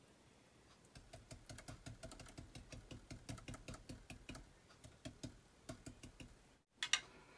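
A brush dabs quickly and lightly on paper.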